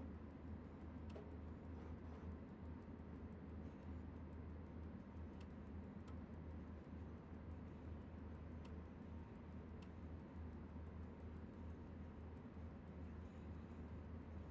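A train engine hums and rumbles steadily.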